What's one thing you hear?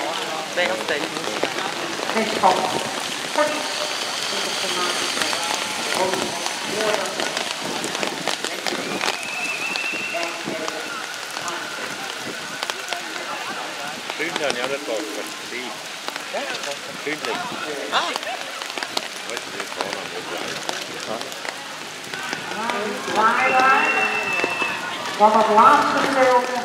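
Horses' hooves thud on soft wet ground.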